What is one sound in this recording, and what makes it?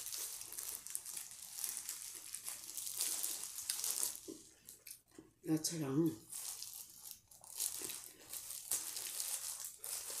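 Plastic gloves crinkle and rustle close by.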